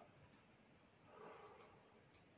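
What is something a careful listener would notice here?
A man breathes out a long, soft puff.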